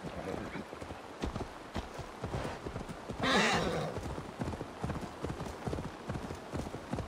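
Horse hooves thud steadily on grass and earth.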